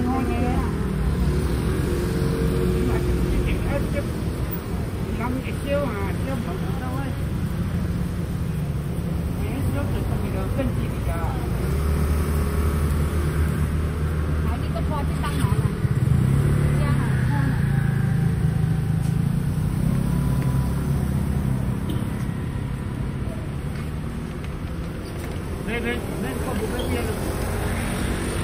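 Motorbike engines and traffic rumble steadily outdoors.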